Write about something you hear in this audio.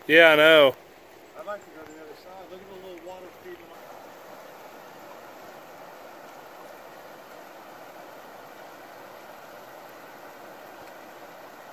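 A river rushes steadily over rocks, outdoors.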